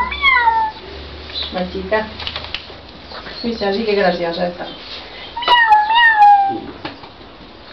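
Puppies whine and yelp in high, sliding cries.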